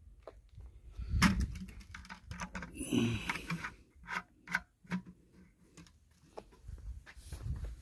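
A metal fitting clicks and scrapes as it is screwed on.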